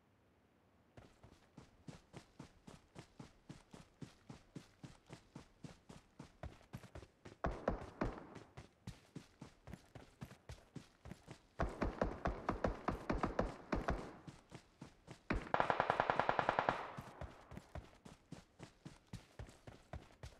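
Footsteps run quickly and steadily over grass and dirt.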